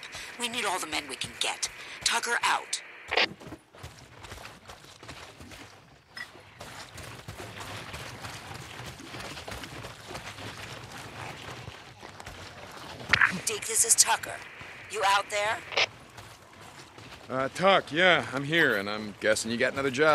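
Footsteps run over grass and dirt.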